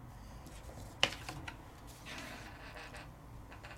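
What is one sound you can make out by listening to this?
A sheet of paper rustles as it is picked up and handled.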